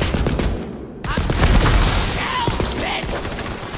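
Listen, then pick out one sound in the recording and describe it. A barrel explodes with a loud boom.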